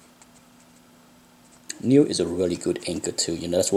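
A page of paper turns with a soft rustle.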